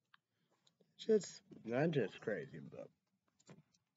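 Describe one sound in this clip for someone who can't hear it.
A young man speaks briefly and casually, close by.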